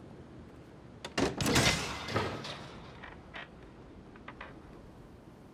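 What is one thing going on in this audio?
Wood knocks and creaks sharply several times, close by.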